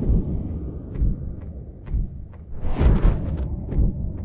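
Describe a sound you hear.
Small objects clink and tap on a work bench.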